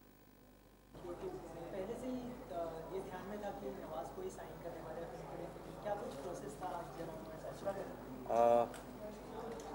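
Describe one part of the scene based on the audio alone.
A second man speaks calmly into a microphone, close by.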